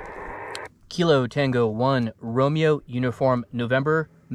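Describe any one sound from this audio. A man speaks close by into a radio handset, calmly and clearly.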